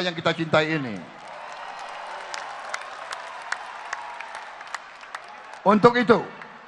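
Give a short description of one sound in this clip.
A large crowd cheers and claps.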